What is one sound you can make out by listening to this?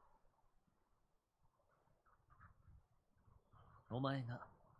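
A young man speaks softly and questioningly, heard close.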